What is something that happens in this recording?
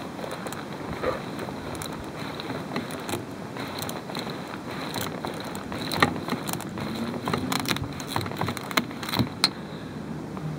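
Pliers click and snap as they crimp a cable.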